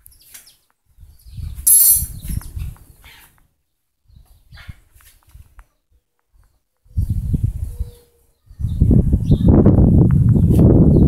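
Wind gusts loudly outdoors.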